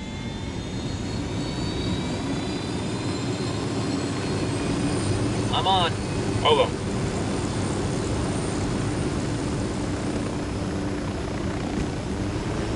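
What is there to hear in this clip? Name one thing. A helicopter engine whines and its rotor thumps steadily nearby.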